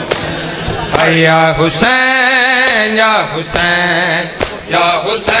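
A young man sings a lament loudly through a microphone.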